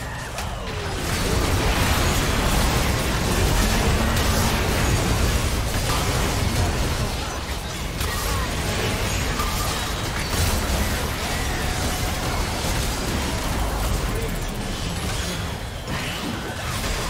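Video game spells crackle and blast during a chaotic battle.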